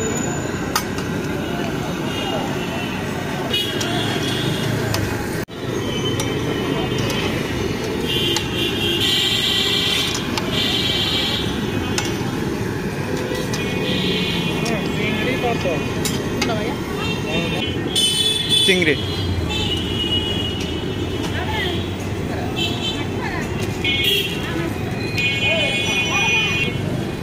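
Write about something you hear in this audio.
Hot oil sizzles and crackles steadily as food fries.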